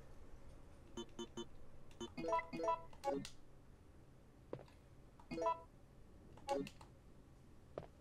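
Short electronic beeps sound as menu items are chosen.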